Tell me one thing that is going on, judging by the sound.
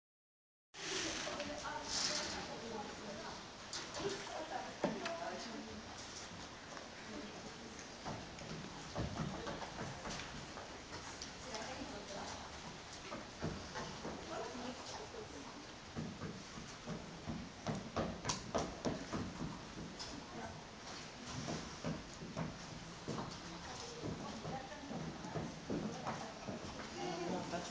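A horse's hooves thud softly on sand in a large echoing hall.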